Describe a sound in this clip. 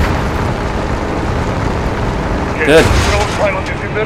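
A pickup truck engine rumbles.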